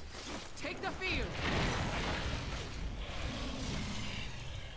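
A magical burst crashes and whooshes.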